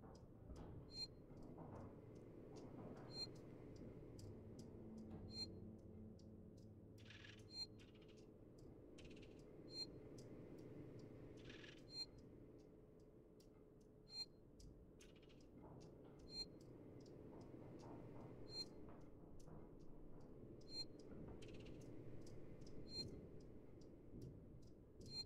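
An electronic device beeps at a steady, regular pace.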